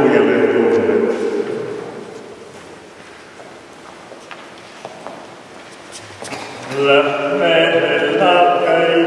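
People sing together in a large echoing hall.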